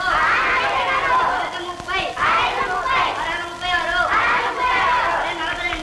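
A group of children sing together in chorus.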